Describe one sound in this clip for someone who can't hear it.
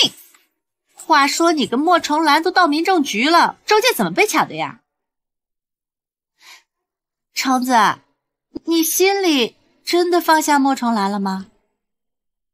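A young woman asks questions in a lively voice, close by.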